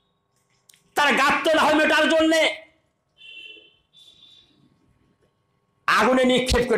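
An elderly man preaches forcefully into a microphone.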